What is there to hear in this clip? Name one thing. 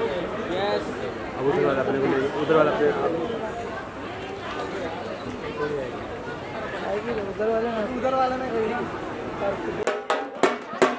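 A crowd of men and women chatter and call out close by.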